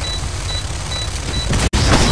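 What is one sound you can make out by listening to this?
A handgun fires several sharp shots.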